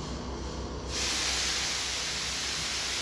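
A paint sprayer hisses as it sprays.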